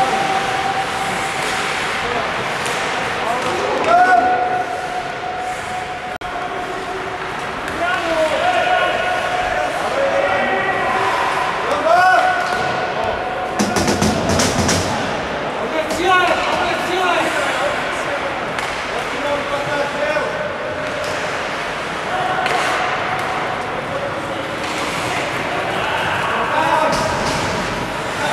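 Hockey players shout to each other across a large echoing rink.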